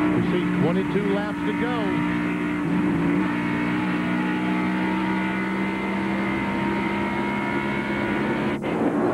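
A race car engine roars loudly at a high, steady pitch from close up.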